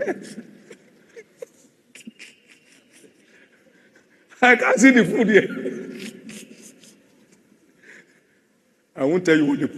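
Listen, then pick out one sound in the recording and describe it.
A man preaches loudly and with passion through a microphone in a large echoing hall.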